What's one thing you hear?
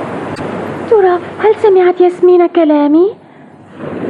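A young boy speaks in surprise.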